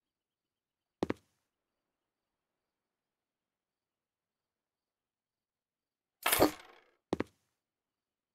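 A piece of furniture knocks sharply as it is set down.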